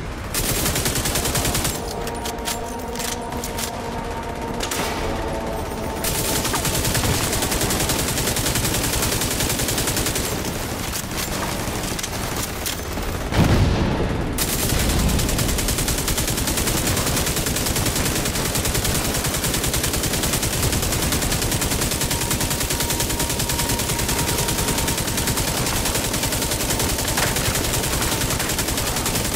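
Rifle fire bursts in rapid shots.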